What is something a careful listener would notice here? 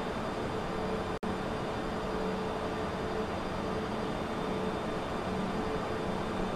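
Jet engines roar steadily with a constant rushing wind.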